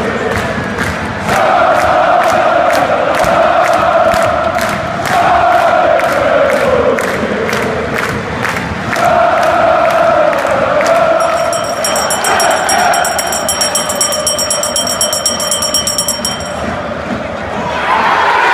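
A huge stadium crowd chants and sings in unison, echoing loudly.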